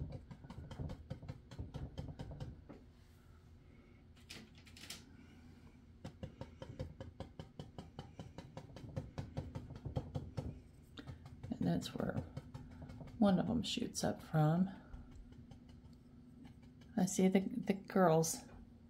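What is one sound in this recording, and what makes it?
A brush scrubs softly across paper in quick strokes.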